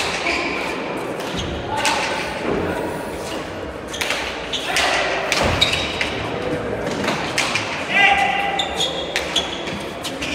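A hard ball smacks against walls and hands in a large echoing hall, again and again.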